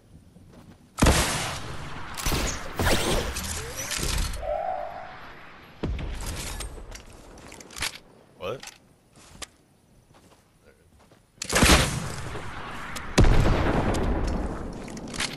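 A rocket explodes with a loud, rumbling boom.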